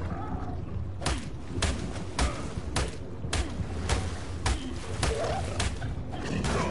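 Repeated heavy chopping blows strike a carcass.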